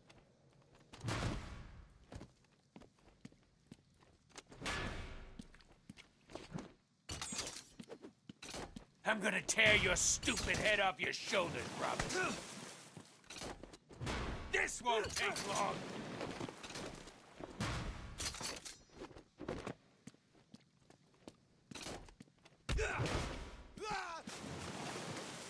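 Punches land with heavy thuds in a brawl.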